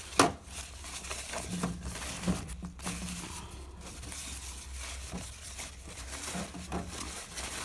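Plastic clicks and taps against a tray.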